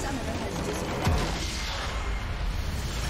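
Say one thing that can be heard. A tower collapses with a deep crash.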